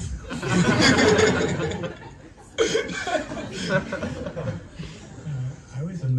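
An elderly man speaks with animation into a close microphone.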